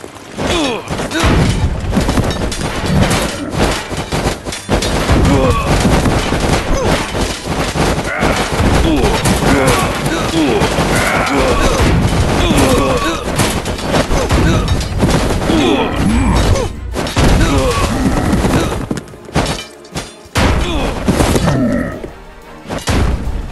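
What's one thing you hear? Swords clash and clang in a crowded battle.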